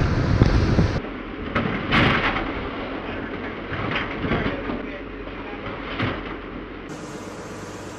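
Nets and gear knock and clatter on a work table.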